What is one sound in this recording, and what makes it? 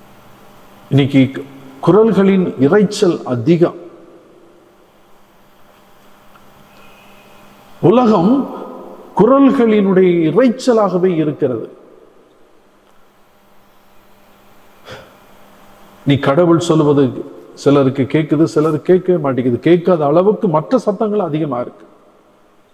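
An elderly man preaches with animation into a microphone, his voice carried over a loudspeaker, in bursts with pauses.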